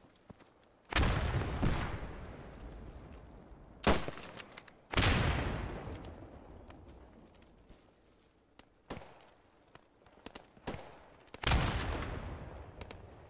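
A rifle fires loud shots that echo and slowly fade.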